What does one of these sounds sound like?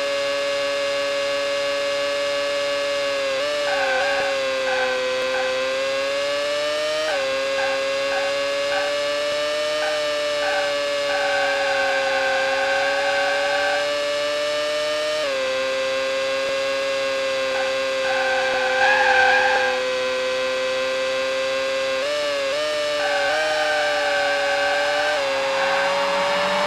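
A racing car engine whines steadily at high revs, shifting pitch as the car brakes and accelerates.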